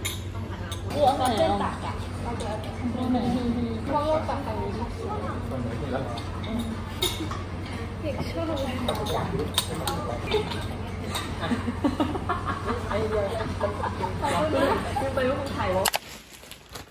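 Young women chat and laugh close by.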